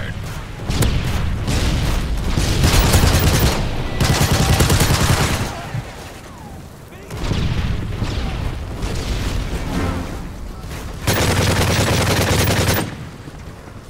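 Rapid gunfire rattles in bursts.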